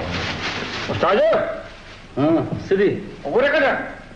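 A man speaks loudly with animation, close by.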